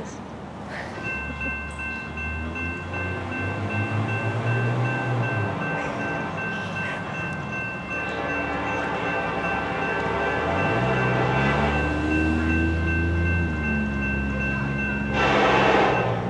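A train horn blows a long steady chord in the distance.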